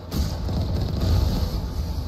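Energy blasts crackle and burst on impact.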